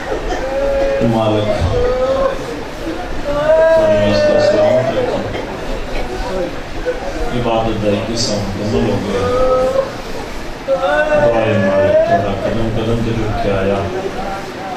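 A crowd of men chants along in low voices.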